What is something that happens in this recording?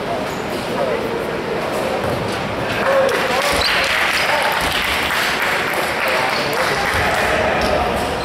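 Young men shout and call out to each other in a large echoing hall.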